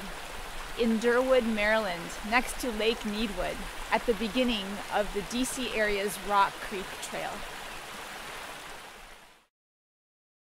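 A stream rushes over rocks nearby.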